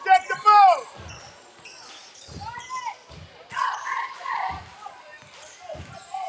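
A basketball bounces on a gym floor.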